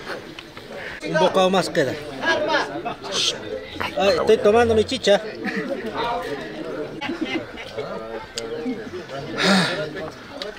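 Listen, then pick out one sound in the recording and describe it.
Men talk and laugh nearby.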